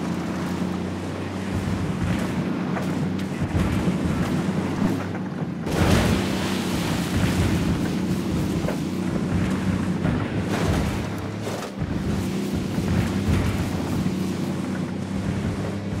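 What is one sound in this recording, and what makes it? A truck bumps and rattles over rough ground.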